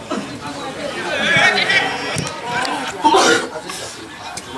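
Young men shout and call out across an open outdoor pitch.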